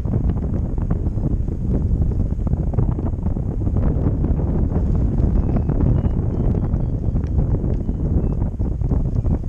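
Strong wind buffets and roars loudly against a microphone outdoors.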